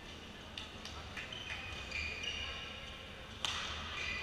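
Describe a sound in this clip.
Shoes squeak sharply on a sports floor.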